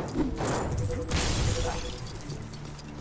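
Scattered coins jingle and clink.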